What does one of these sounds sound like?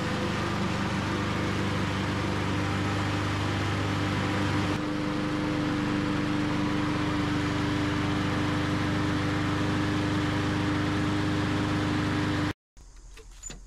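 A lawn mower engine idles steadily close by.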